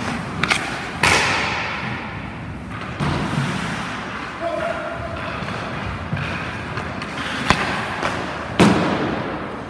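A hockey stick cracks against a puck, echoing through a large rink.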